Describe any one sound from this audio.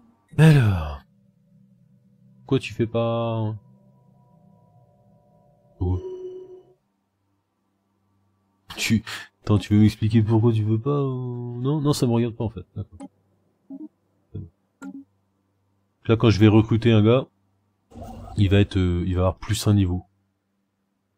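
A man talks with animation close to a microphone.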